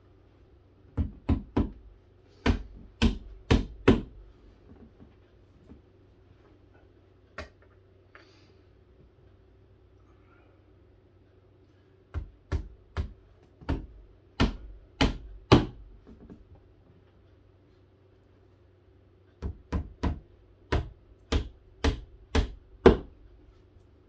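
A hammer knocks sharply on wood in quick bursts of blows.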